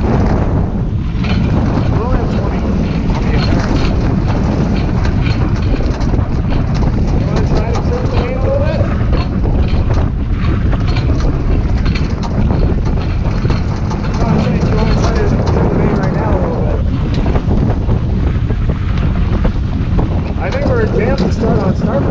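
Water rushes and splashes against a sailboat's hull.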